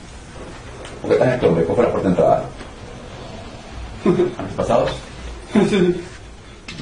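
A man speaks calmly, heard through a video call in a small room.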